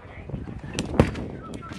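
A softball smacks sharply into a catcher's mitt.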